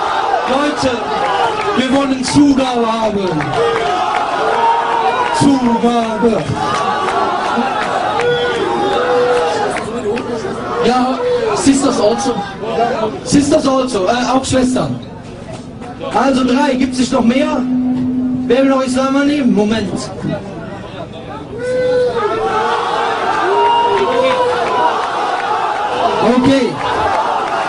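A crowd shouts and chants outdoors.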